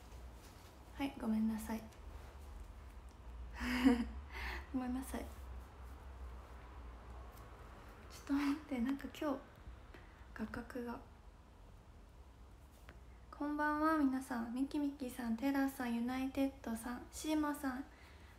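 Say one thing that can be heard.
A young woman speaks softly and casually, close to a phone microphone.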